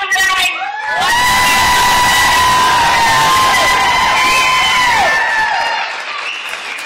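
A crowd of children screams and cheers loudly together.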